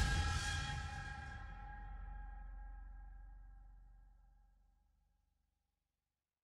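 A deep electronic drone with a ringing tone slowly fades away into silence.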